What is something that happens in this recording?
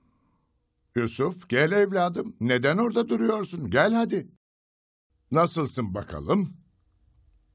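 An elderly man speaks calmly and warmly.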